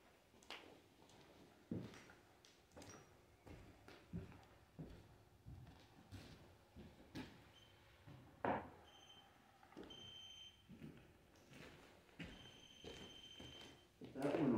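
Footsteps creak and thud on wooden boards.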